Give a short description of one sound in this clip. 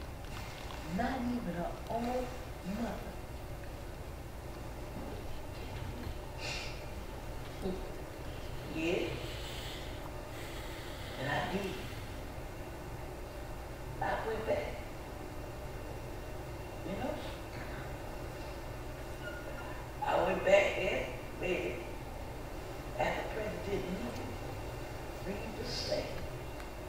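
An older woman speaks through a microphone in short phrases.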